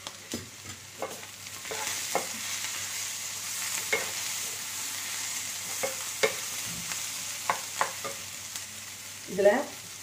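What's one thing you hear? A wooden spatula scrapes and taps against a metal pan.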